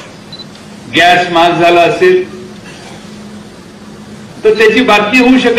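A middle-aged man speaks with animation into a microphone over a loudspeaker.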